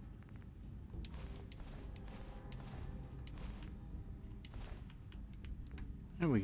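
Short soft clicks sound again and again.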